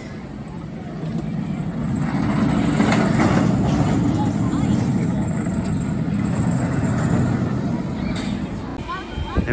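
A roller coaster train roars and rattles along its steel track nearby.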